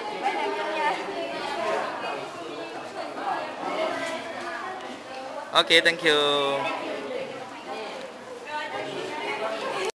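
Teenage girls chatter and laugh close by.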